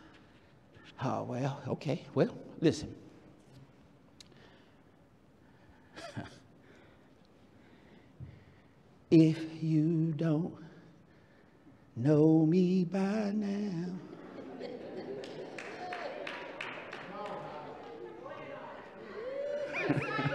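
A man preaches with animation into a microphone in an echoing hall.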